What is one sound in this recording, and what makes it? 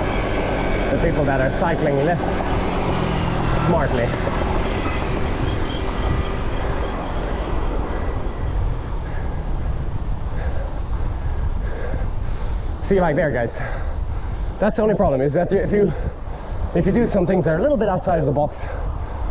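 Wind rushes loudly past a cyclist riding fast.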